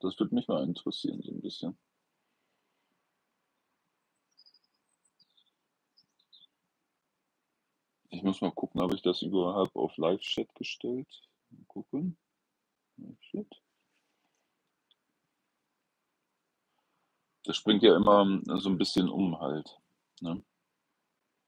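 A middle-aged man speaks calmly and close to the microphone, with long pauses.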